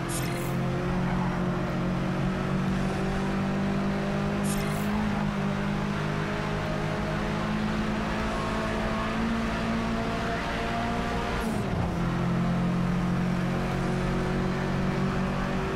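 A sports car engine roars steadily at high revs, dropping briefly as the gear shifts.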